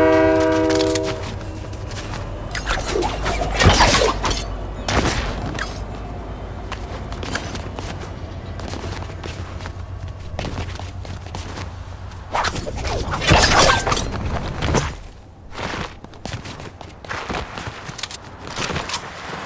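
Footsteps patter quickly on grass and pavement.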